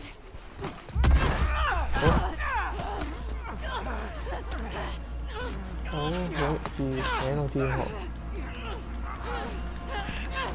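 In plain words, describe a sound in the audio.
Two people scuffle and grapple in a fight.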